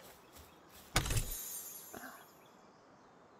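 A treasure chest creaks open with a bright chime.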